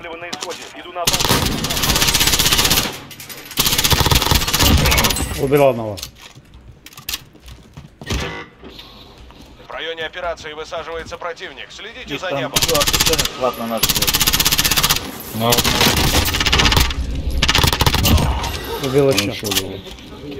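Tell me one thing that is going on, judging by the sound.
An automatic rifle fires loud, rapid bursts.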